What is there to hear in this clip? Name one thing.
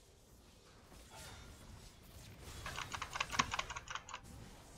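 Game spell effects crackle and clash during a fight.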